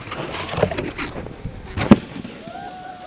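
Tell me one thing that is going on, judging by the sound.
A snowboard knocks onto a wooden rail.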